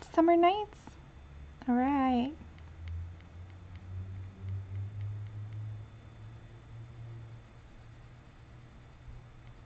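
A marker rubs softly on paper.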